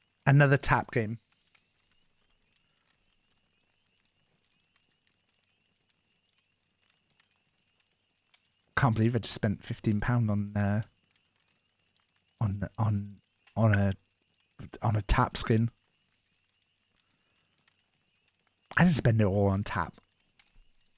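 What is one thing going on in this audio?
A man speaks into a close microphone in short, animated bursts.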